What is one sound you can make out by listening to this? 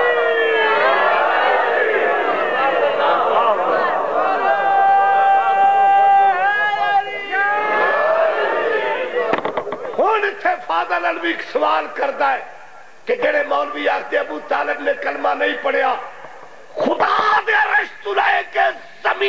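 A middle-aged man speaks passionately and loudly into a microphone.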